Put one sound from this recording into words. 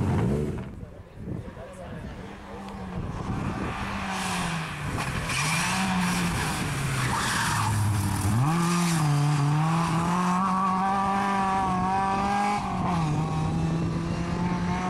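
A rally car engine roars and shifts gears as the car speeds past and away.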